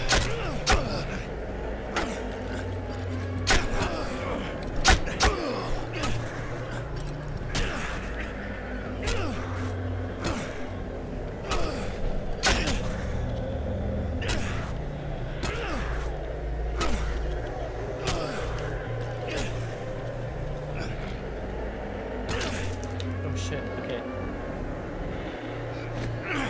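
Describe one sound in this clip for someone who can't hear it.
Sharp blows and metal clangs ring out in a fight.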